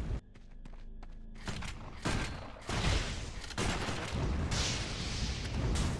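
Magic blasts and fiery bursts crackle in a fight.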